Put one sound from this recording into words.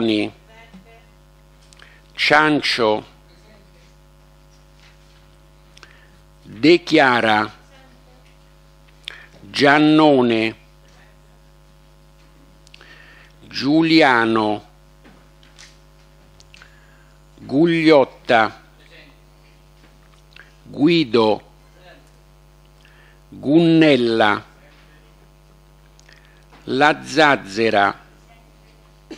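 A woman speaks in short phrases through a microphone, with long pauses between them.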